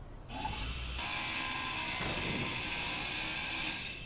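A grinder whines as it cuts into metal.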